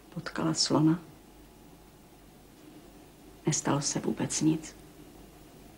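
A woman speaks calmly nearby, in short phrases.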